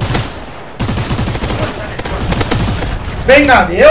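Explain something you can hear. A submachine gun fires a rapid burst of shots.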